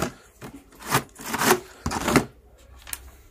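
Wooden cabinet doors slide and knock shut.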